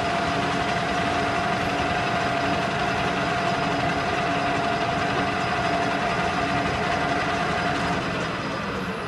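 A lathe hums loudly as its cutting tool shears metal with a steady whine.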